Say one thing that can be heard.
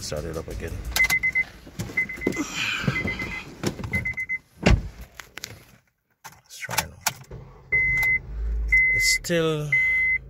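A car's warning chime beeps in short, steady bursts.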